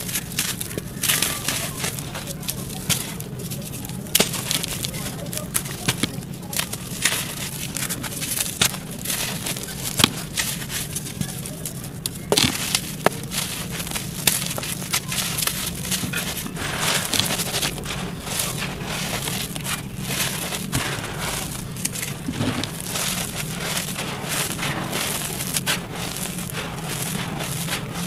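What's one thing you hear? Dry soil pours and trickles in a soft, hissing rush.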